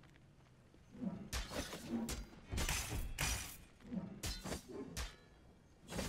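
Heavy blows strike and whoosh in a fast fight.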